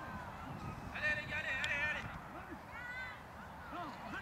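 Players shout calls across the field.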